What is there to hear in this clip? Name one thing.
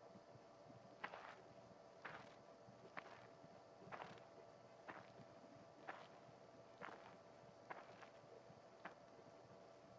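Light quick footsteps patter along in a cartoon.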